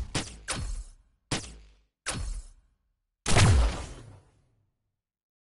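Video game menu sounds swoosh and chime in short bursts, then fall silent.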